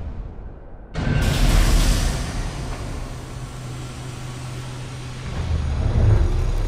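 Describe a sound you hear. Gas hisses loudly as it bursts out.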